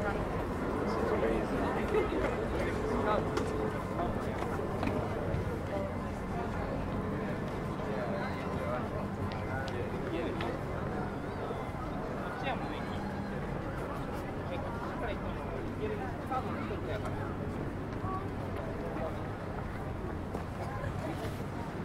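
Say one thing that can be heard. Footsteps shuffle on paving as people walk past.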